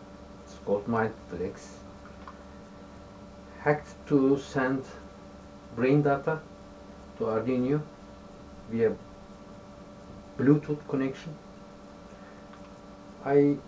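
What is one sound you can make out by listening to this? An elderly man speaks calmly in short bursts, close by.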